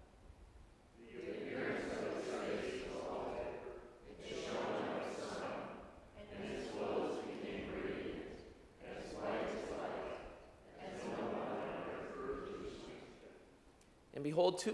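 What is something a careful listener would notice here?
A congregation recites together in unison, echoing in a large hall.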